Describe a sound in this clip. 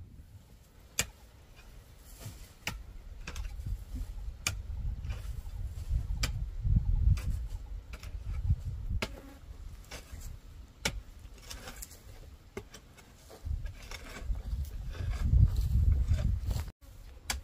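A hoe strikes and scrapes dry soil in steady, repeated blows.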